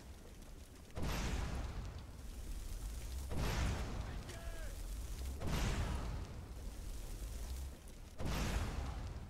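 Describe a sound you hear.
Fireballs explode with a loud boom.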